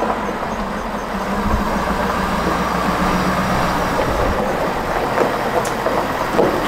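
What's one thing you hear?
A diesel pickup truck engine rumbles as the truck rolls slowly closer.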